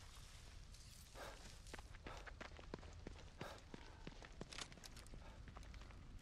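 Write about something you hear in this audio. Footsteps tap quickly on hard pavement.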